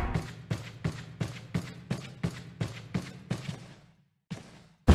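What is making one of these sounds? Footsteps thud at a quick, steady pace on a hard floor.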